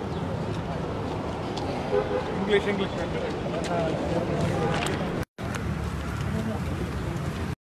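Several men talk at once in a noisy crowd outdoors.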